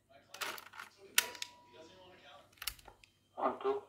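Buttons on a small cassette player click sharply.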